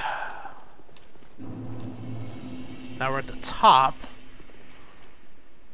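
Heavy armored footsteps thud on stone.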